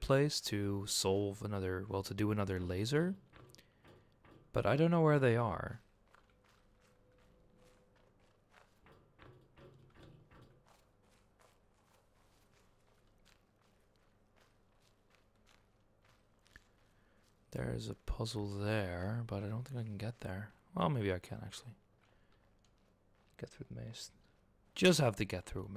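Footsteps crunch softly on sand and stone.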